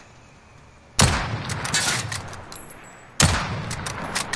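A sniper rifle fires a loud, sharp shot that echoes away.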